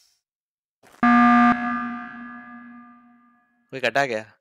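A loud game alarm blares and fades.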